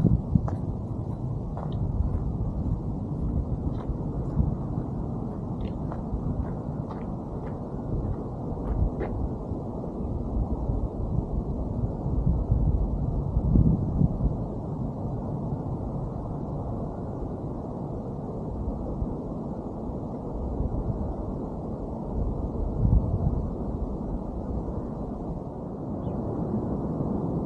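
Wind blows steadily across an open hilltop and rumbles against the microphone.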